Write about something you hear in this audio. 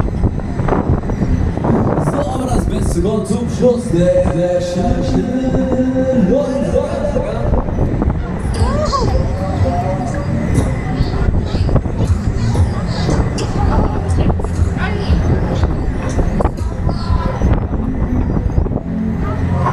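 A fairground ride rumbles and whirls steadily around.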